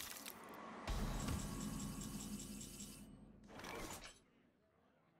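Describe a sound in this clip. A bright game chime rings out with a low swelling tone.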